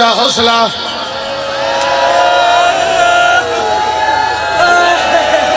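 A man chants a mournful lament.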